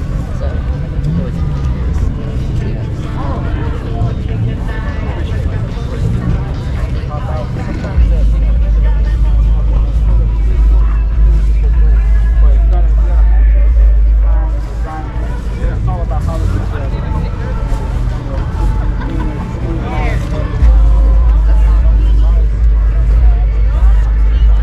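A crowd of people chatters outdoors in the distance.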